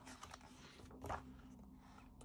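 A book page rustles as it is turned.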